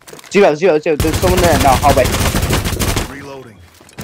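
A submachine gun fires in rapid automatic bursts.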